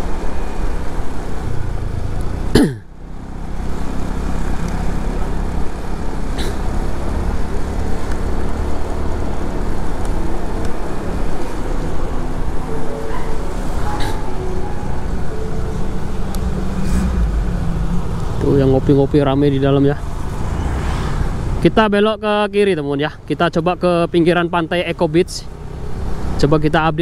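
Traffic rumbles steadily along a wet street outdoors.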